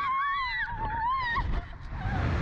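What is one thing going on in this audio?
A young person screams in a high pitch close by.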